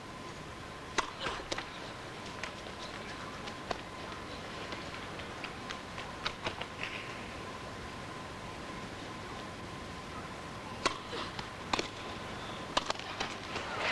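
A tennis racket strikes a ball with sharp pops.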